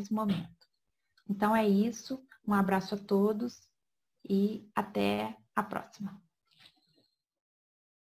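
A woman speaks calmly into a microphone, heard as if over an online call.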